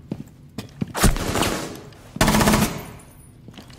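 A rifle fires in short, loud bursts.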